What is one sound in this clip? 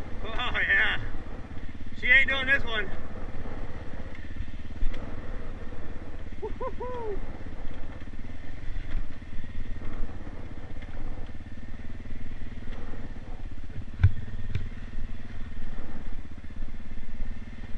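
A dirt bike engine rumbles steadily up close.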